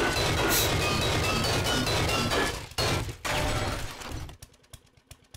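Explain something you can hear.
A chainsaw motor roars loudly while cutting, then stops.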